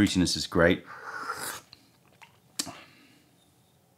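A man slurps tea loudly from a small cup.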